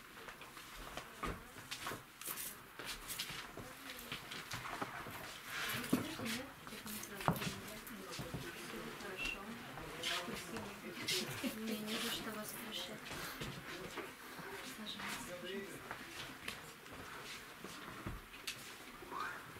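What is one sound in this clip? Footsteps shuffle on a floor.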